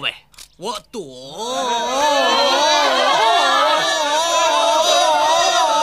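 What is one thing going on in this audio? A crowd of men and women gasp and cry out together in amazement.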